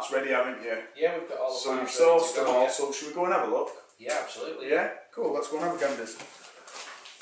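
A man answers calmly.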